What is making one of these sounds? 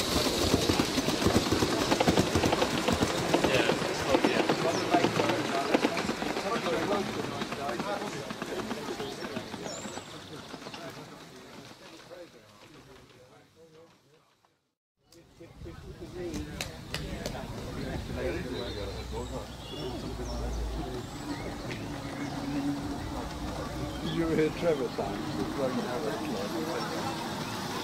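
A model train rattles and clicks along its track.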